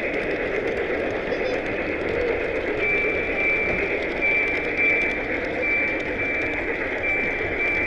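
A model train rumbles along its track.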